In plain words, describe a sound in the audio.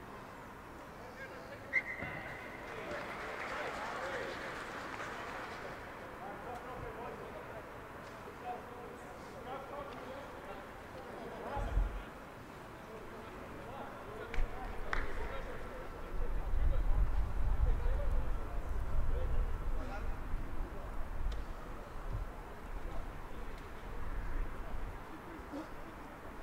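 Rugby players shout to each other across an open pitch in the distance.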